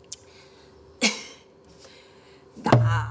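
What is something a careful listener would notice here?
A middle-aged woman strikes a large drum with sharp beats.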